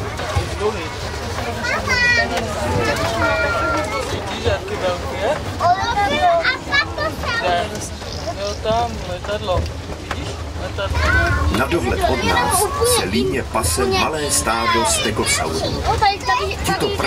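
An open tram rumbles along steadily.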